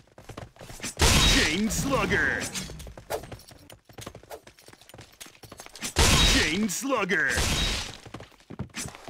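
A loud burst of sound effects marks a kill in a game.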